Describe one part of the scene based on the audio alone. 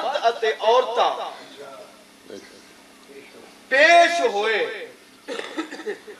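A man speaks passionately through a microphone, in bursts with pauses.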